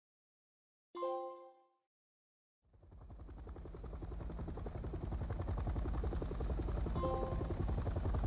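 A short chime rings out.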